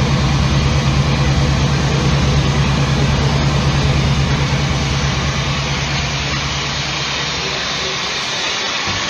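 Dense, noisy electronic textures hiss and crackle over the music.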